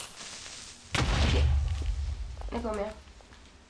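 A loud explosion booms and rumbles.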